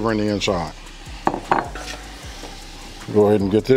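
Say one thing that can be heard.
A wooden spoon stirs chunky food in a metal pot.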